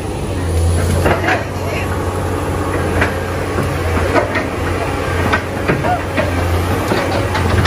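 Tree branches crack and snap as an excavator pushes down trees.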